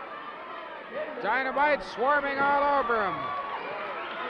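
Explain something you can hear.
A man in the crowd shouts loudly.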